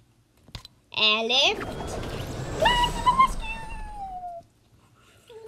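A young girl exclaims loudly.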